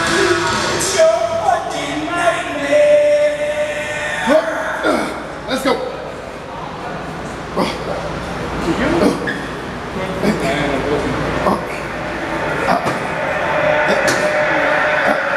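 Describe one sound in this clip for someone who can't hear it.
Heavy dumbbells clank now and then in an echoing room.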